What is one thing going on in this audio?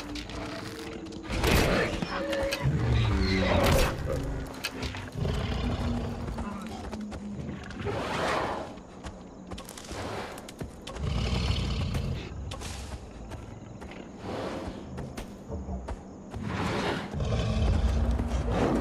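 A large animal's footsteps thud along steadily underfoot.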